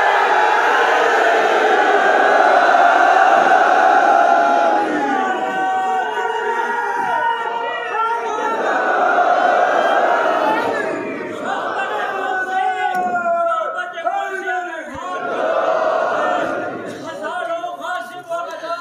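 A man preaches passionately through a loudspeaker, with a strong echo.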